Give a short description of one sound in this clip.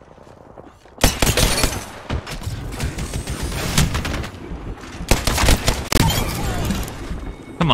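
Rapid gunfire bursts loudly in a game.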